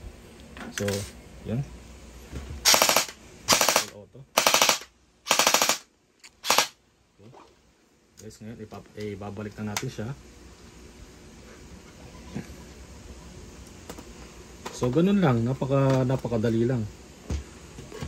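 Plastic parts click and clack as they are fitted together.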